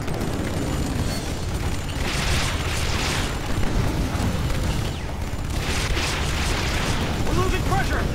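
Explosions boom and rumble with heavy low bursts.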